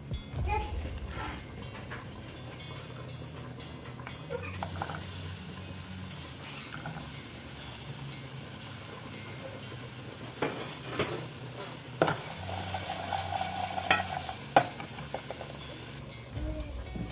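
Gas burners hiss steadily.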